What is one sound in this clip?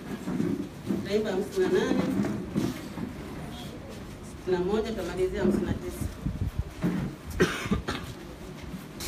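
A woman speaks into a microphone, heard over a loudspeaker.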